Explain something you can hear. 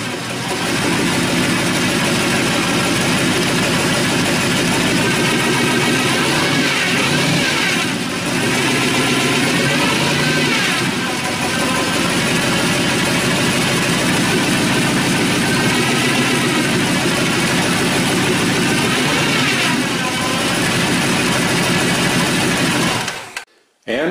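A car engine idles loudly with a lumpy, rumbling beat close by.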